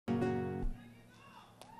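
Acoustic guitars strum a loud final chord that stops abruptly.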